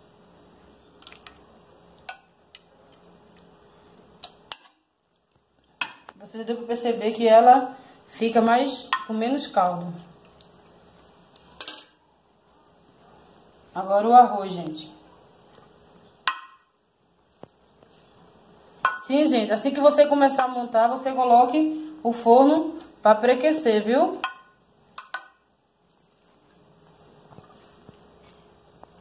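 A metal spoon scrapes and taps against a glass dish.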